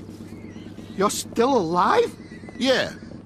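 A man speaks with a sneering tone.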